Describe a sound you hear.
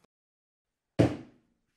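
A rubber stamp thumps down onto paper.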